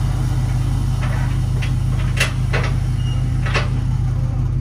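Metal thumps and clanks as a man climbs out of a steel bin.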